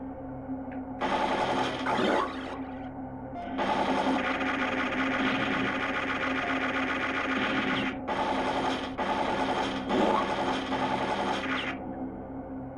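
Loud game blasts and explosions burst out through a small speaker.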